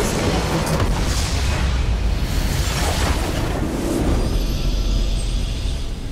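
A large structure explodes with a deep boom.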